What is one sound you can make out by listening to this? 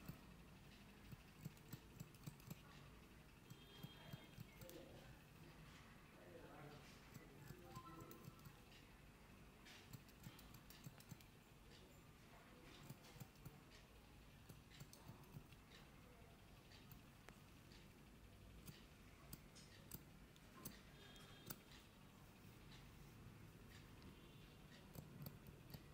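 Scissors snip closely at a beard, clicking sharply again and again.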